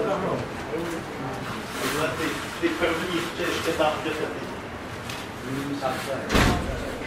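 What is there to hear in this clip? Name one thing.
A man speaks calmly at a distance in an echoing room.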